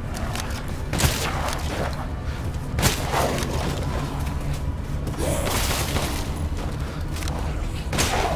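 A shotgun fires with loud booming blasts.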